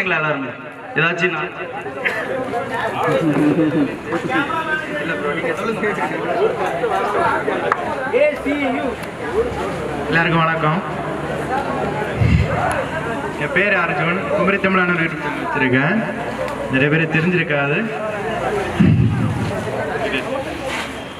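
A second young man speaks animatedly into a microphone through a loudspeaker.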